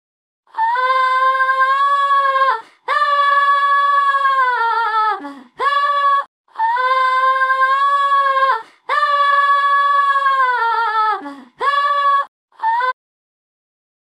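A cartoon creature sings long wavering notes in a high voice.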